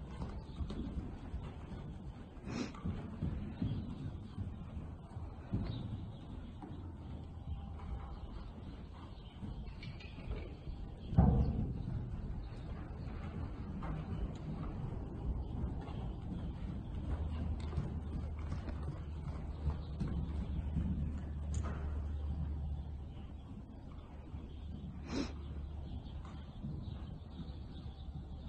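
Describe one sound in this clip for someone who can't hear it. A horse's hooves thud softly on deep sand in a large indoor hall.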